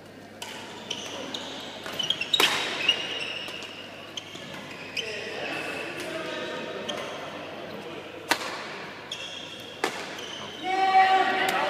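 Rackets strike a shuttlecock back and forth with sharp pops in a large echoing hall.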